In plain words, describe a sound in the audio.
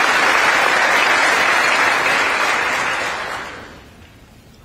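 A large crowd applauds loudly in a big hall.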